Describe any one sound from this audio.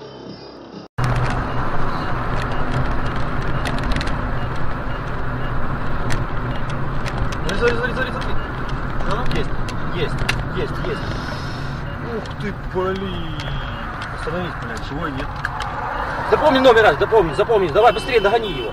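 A car engine hums steadily with road noise from inside the car.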